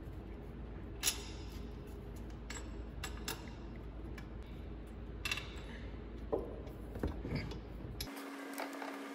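Metal parts click and knock as they are handled close by.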